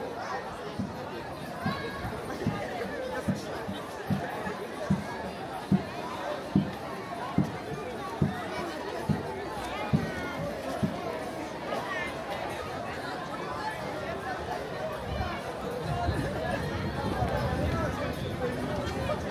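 A large outdoor crowd chatters and murmurs.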